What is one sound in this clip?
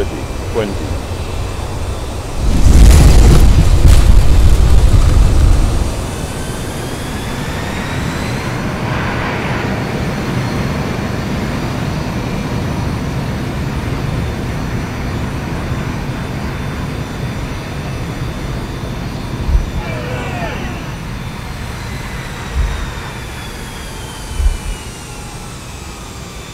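A jet airliner's engines whine and roar as the plane taxis.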